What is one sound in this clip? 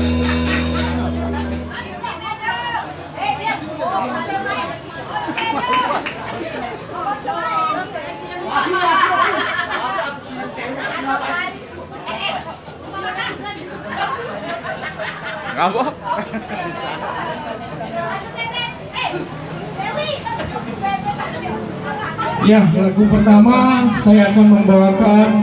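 Men chatter loudly close by in a crowd.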